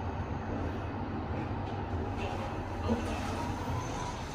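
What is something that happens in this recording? Lift doors slide open.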